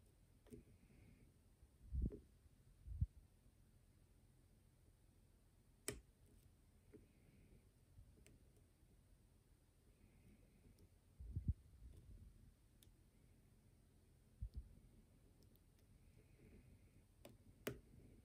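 A thin metal pick clicks and scrapes inside a small lock.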